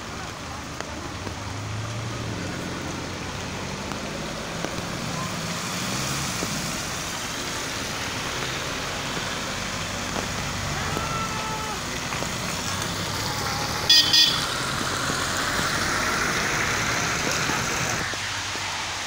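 Car tyres hiss on a wet road as vehicles pass slowly.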